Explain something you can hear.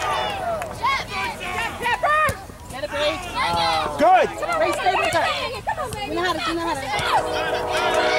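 A soccer ball thuds off a kick.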